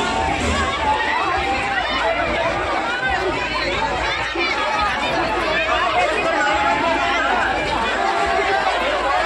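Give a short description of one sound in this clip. A large crowd of men and women chatters and calls out all around, outdoors.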